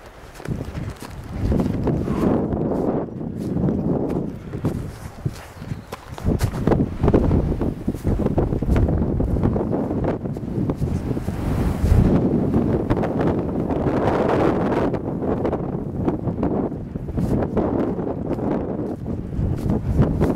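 Wind buffets a microphone outdoors with a low rumble.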